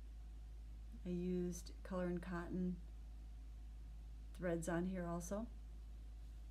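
A middle-aged woman speaks calmly close to the microphone.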